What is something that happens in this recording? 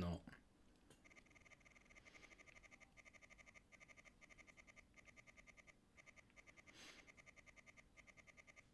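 Rapid electronic beeps tick steadily.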